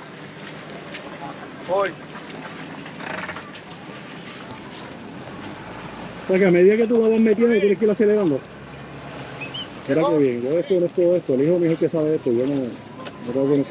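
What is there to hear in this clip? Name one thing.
A boat's outboard motor rumbles at idle.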